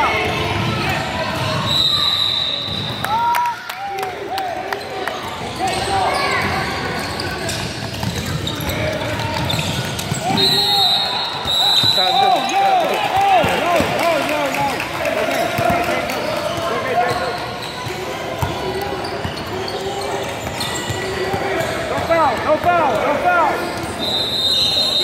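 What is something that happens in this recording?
Spectators chatter and call out in an echoing hall.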